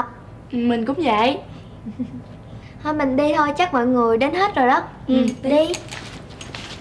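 Teenage girls talk.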